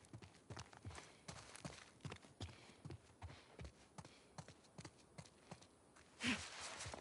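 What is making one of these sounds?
Footsteps walk on a wooden floor.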